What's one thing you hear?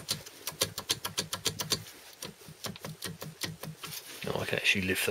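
Metal gear teeth click as a manual gearbox's gears are turned by hand.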